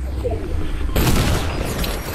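A gun fires loudly in a video game.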